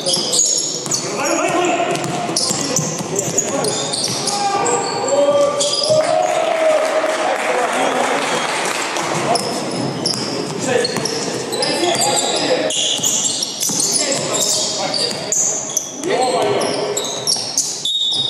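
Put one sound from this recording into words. Men shout and call out to each other across an echoing gym.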